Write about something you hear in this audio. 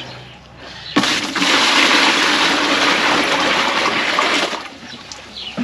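Water pours steadily from a plastic jerrycan into a plastic basin.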